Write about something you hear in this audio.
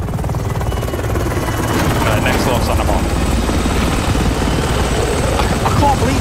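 A helicopter's rotor chops overhead.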